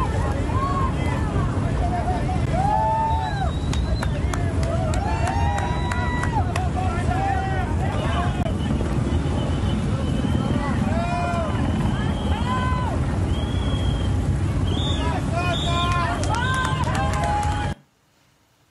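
A crowd chants and shouts loudly outdoors.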